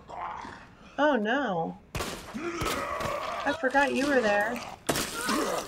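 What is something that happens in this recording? A zombie growls and groans loudly.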